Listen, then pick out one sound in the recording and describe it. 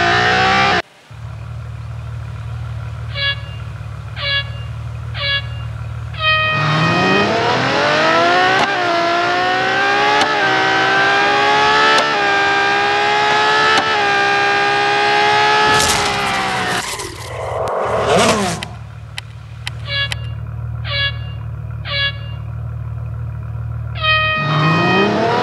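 A race car engine idles with a low rumble.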